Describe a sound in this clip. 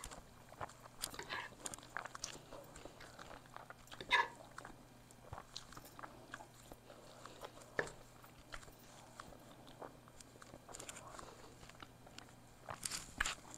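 A fork clinks and scrapes against a plate of noodles close to a microphone.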